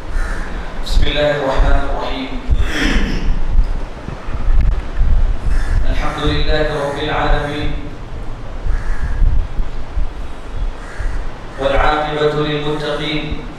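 A man chants melodically into a microphone.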